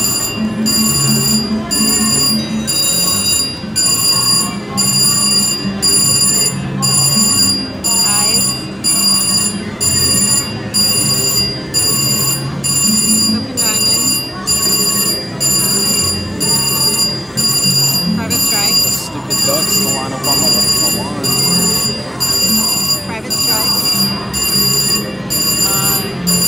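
A slot machine beeps rapidly and steadily.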